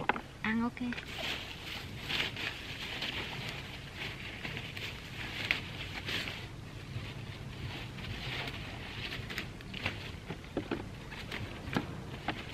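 Leaves rustle and crackle as stems are handled.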